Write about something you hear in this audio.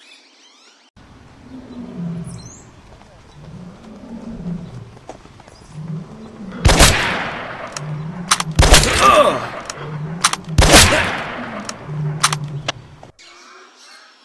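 A large animal roars and grunts.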